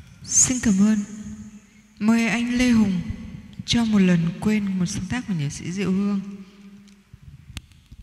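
A young woman sings through a microphone and loudspeakers.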